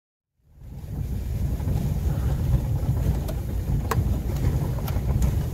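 A car rumbles slowly over a bumpy dirt road.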